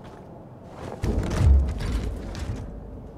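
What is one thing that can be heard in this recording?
A latched metal case lid clanks open.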